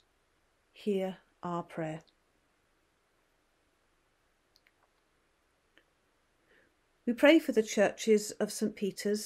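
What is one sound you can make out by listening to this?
A middle-aged woman speaks calmly and clearly into a close microphone, pausing between phrases.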